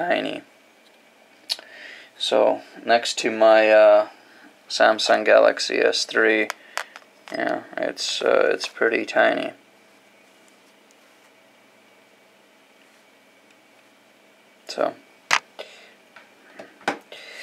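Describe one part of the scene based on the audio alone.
Fingers handle a small circuit board and a phone, tapping and clicking softly.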